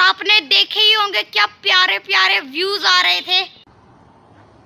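A boy talks with animation close to the microphone.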